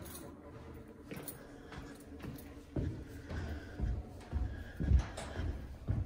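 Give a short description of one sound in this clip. Footsteps thud on carpeted stairs going down.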